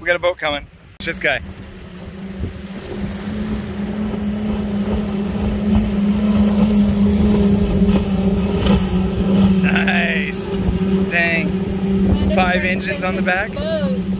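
A speedboat engine drones steadily as the boat races past.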